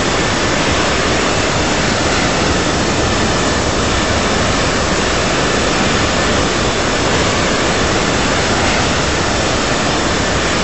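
Jet engines roar steadily as an airliner cruises.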